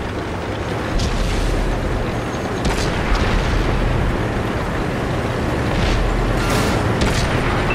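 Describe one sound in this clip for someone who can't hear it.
A heavy tank engine rumbles and roars steadily.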